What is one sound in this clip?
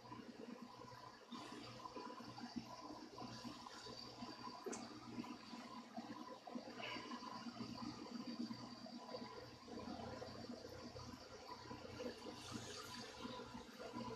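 A cloth rubs and squeaks against a guitar body.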